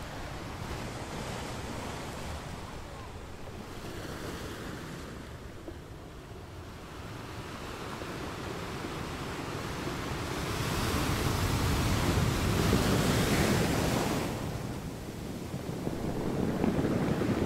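Ocean waves roll in and crash against rocks.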